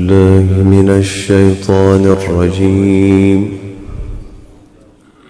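A man chants in a strong, sustained melodic voice close to a microphone.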